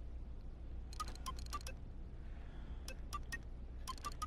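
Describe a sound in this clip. Short, bright interface clicks sound in quick bursts as menu selections change.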